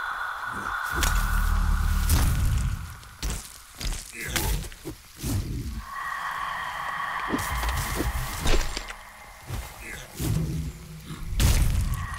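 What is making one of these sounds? Blades clash and strike in quick hits.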